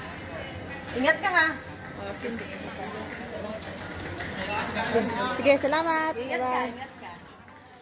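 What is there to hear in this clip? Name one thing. A woman speaks nearby with animation.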